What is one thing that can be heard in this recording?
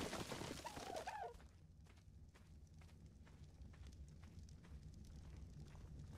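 Footsteps patter quickly over ground.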